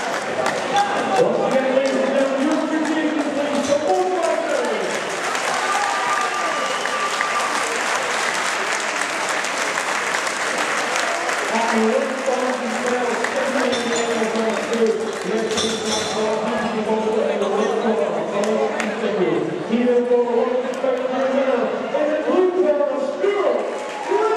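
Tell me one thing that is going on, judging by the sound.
A man announces with drawn-out calls through a loudspeaker in a large echoing hall.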